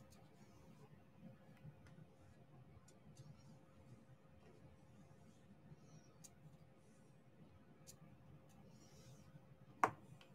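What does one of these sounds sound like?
Tiny plastic beads click softly as they are pressed into place.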